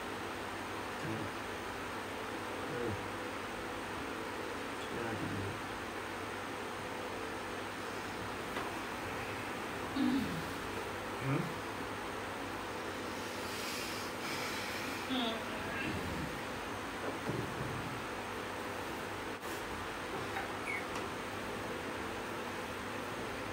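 An electric fan hums steadily close by.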